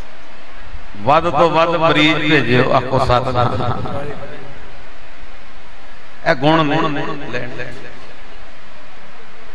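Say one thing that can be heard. An elderly man sings into a microphone in long, wavering phrases.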